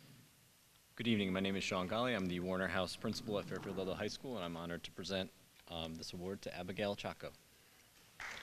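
A man speaks clearly through a microphone in a large echoing hall.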